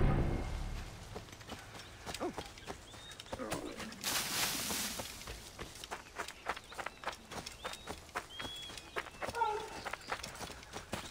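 Footsteps run quickly over dry ground.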